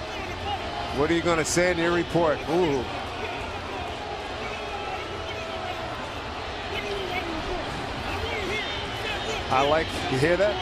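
A man shouts angrily in a heated argument.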